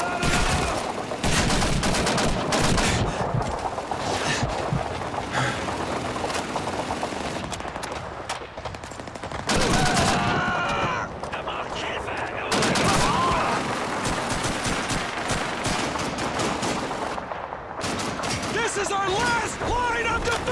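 Rifle shots crack loudly, one after another.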